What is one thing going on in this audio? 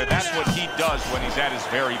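Punches thud against a boxer's body.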